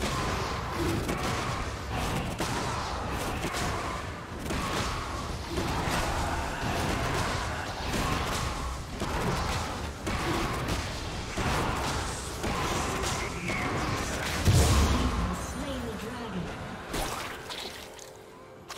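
Spell effects whoosh and crackle in a fast game battle.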